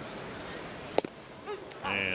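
A wooden bat cracks against a baseball.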